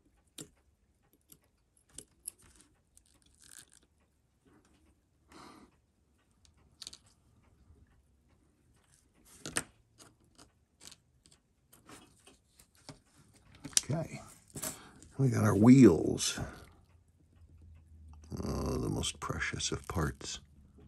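Metal tweezers tick and click against a small watch movement.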